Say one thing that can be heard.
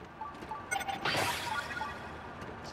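A magical shimmer whooshes briefly.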